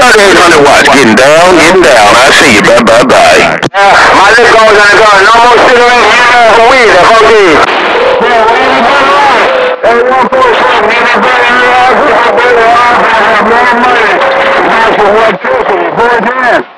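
Warbling, whistling signals with hiss play loudly from a radio loudspeaker.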